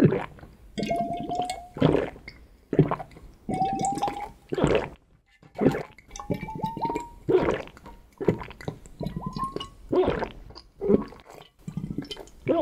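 Liquid sloshes and gurgles in a glass vessel.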